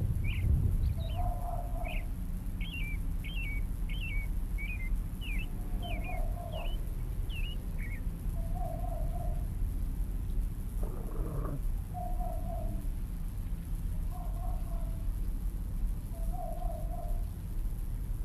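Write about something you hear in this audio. Crows caw now and then in the distance.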